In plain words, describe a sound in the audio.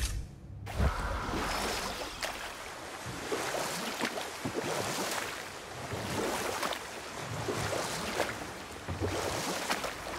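Water swishes along the side of a small rowing boat.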